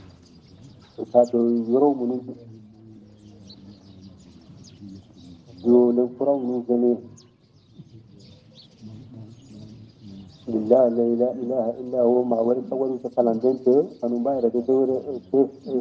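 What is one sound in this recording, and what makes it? An elderly man chants in a slow, melodic voice.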